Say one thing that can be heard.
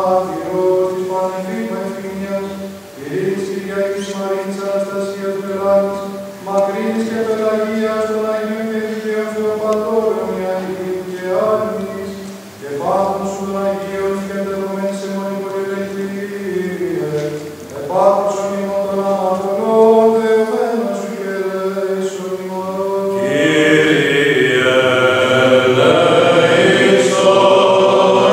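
A group of men chant together in a slow, sustained tone, echoing in a large resonant hall.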